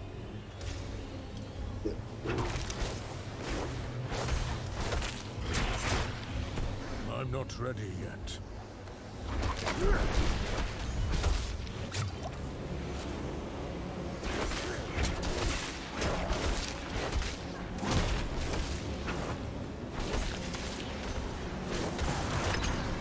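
Spell blasts and weapon hits crack and thud again and again in a fight.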